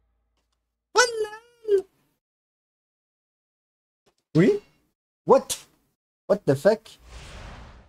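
A man speaks in short bursts close to a microphone.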